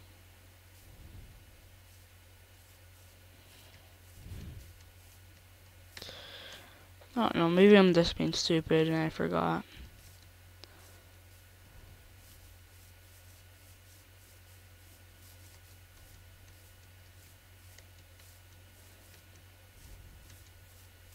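Footsteps thud softly on grass now and then.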